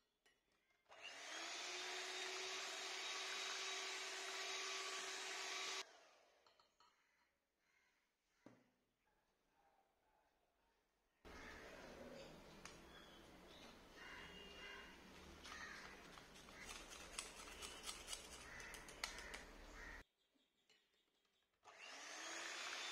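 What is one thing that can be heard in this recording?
An electric hand mixer whirs steadily as it beats batter.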